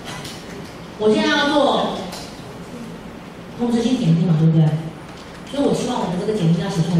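A young woman speaks loudly close by.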